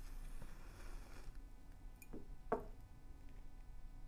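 A lighter clicks.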